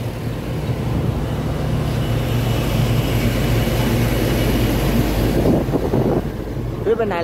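A heavy truck rumbles past close by.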